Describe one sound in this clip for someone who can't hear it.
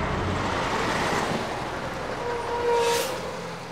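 A bus engine hums as a bus drives along a road.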